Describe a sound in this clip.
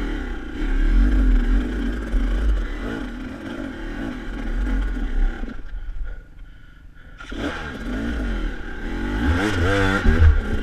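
A dirt bike engine revs up and down close by, dropping out briefly before roaring again.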